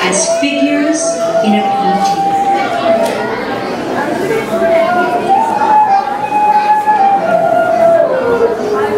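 A woman sings a slow, drawn-out melody through loudspeakers in a large hall.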